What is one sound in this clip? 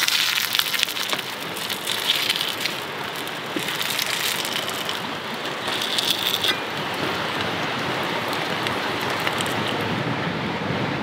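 Dumplings sizzle and crackle in hot oil.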